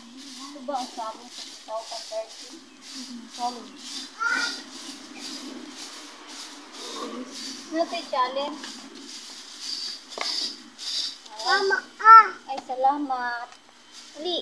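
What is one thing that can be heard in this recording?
Young women talk casually nearby, outdoors.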